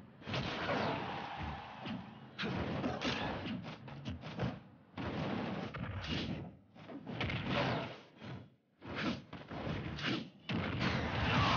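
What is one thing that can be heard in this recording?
Video game fighting sounds crash and thud in quick bursts.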